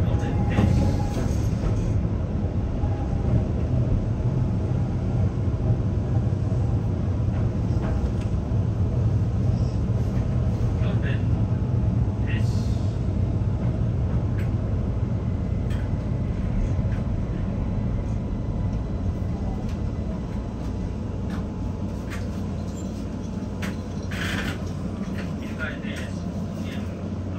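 A train rumbles steadily along the tracks, growing a little quieter toward the end.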